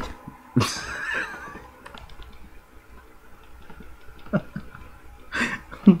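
A young man laughs softly.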